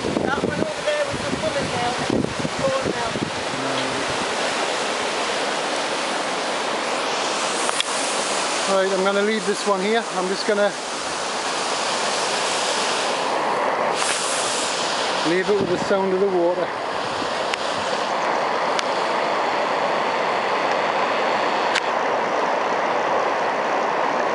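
Water rushes and churns steadily over a weir outdoors.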